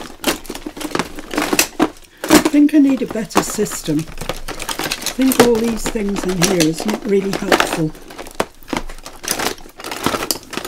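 Metal and plastic tools clatter and rattle in a plastic box.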